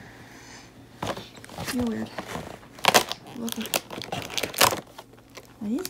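A child's fingers press and tear open small cardboard flaps.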